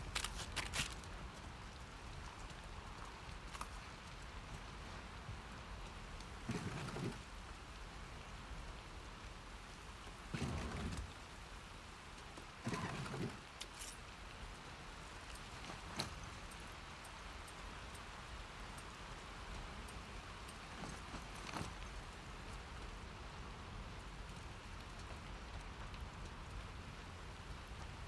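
Footsteps crunch over rubble and broken glass.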